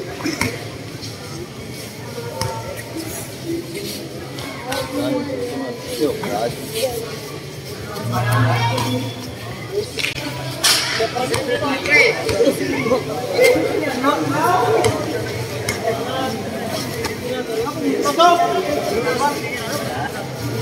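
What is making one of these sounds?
A crowd of young men shout and cheer in a large echoing hall.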